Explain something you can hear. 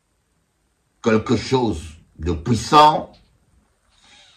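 A middle-aged man speaks close to a microphone with emphatic pauses.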